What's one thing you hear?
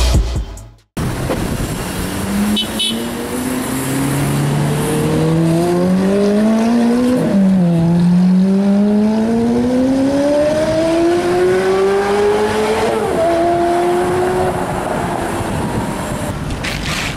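Traffic rumbles along a road.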